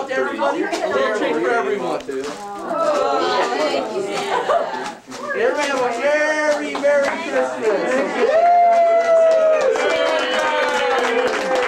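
Children talk and shout excitedly nearby.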